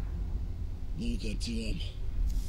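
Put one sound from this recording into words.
A man speaks in a muffled voice through a gas mask.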